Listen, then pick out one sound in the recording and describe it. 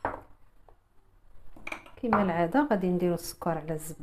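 A glass clinks as it is set down on a wooden board.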